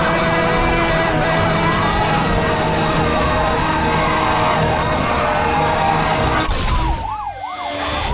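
Tyres skid and scrape across gravel.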